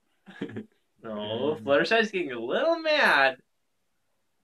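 Young men laugh loudly close by.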